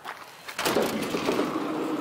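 A key turns in a van door lock with a click.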